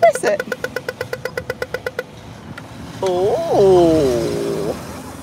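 A baby whimpers and fusses close by.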